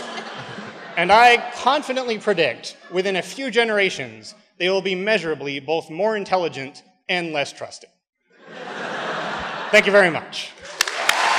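A man speaks into a microphone in a large hall.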